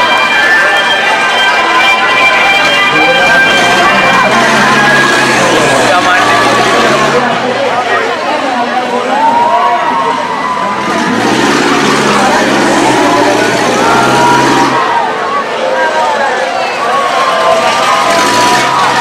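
A large crowd chatters loudly all around outdoors.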